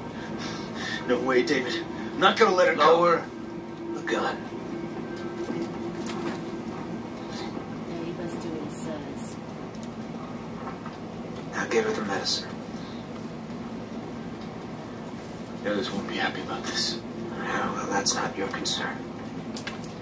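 A man speaks tensely, heard through a television speaker.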